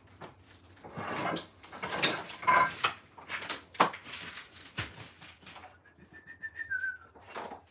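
Metal tools clatter and knock as they are handled.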